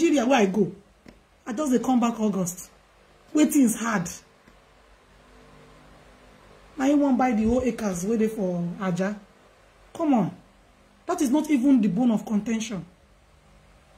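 A woman speaks close to the microphone in short, emphatic bursts with pauses between them.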